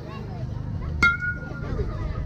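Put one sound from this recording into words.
A metal bat pings sharply against a ball.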